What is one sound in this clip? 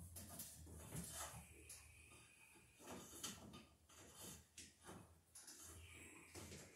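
Tools knock and scrape against wooden boards, with a hollow echo in a bare room.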